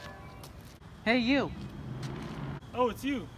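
A young man exclaims loudly close by.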